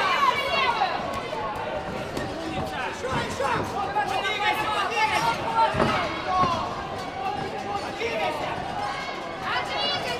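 Punches thud against gloves and bodies.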